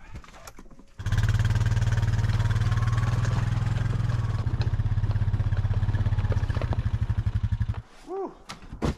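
An all-terrain vehicle engine rumbles steadily as the vehicle drives off over snow.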